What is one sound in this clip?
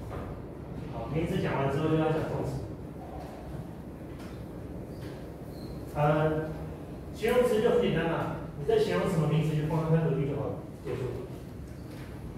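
A man lectures aloud in a room with a slight echo.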